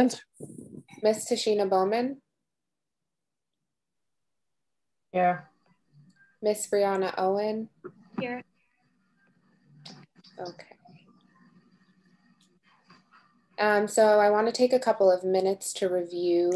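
A woman speaks in short phrases over an online call, with pauses between them.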